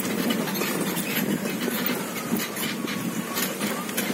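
An electric cart hums softly as it rolls along ahead.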